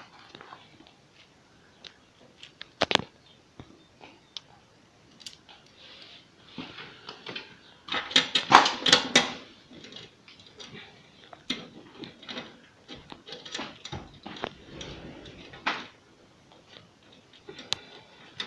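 Hand tools clink and knock on metal.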